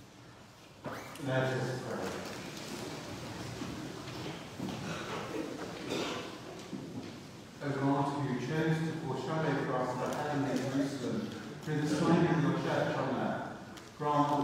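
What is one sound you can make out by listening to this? A man chants through a microphone in a large echoing hall.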